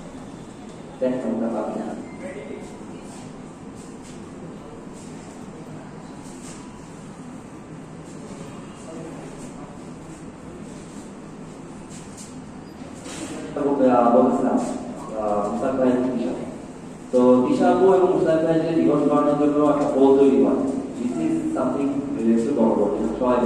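A young man speaks through a microphone and loudspeaker in an echoing room.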